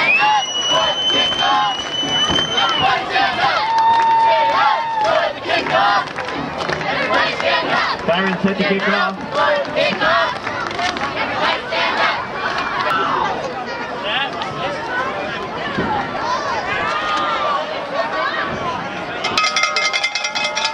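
A crowd of spectators cheers and chatters outdoors.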